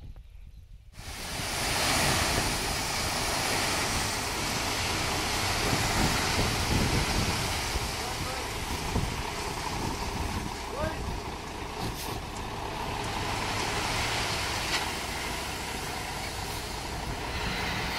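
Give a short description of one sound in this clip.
A heavy truck engine runs steadily.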